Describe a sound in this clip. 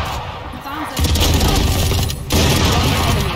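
A rifle fires a rapid, loud burst of shots.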